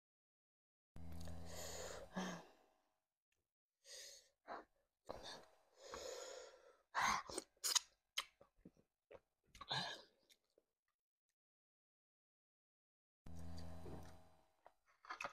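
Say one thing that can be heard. A young woman hums with pleasure close to a microphone.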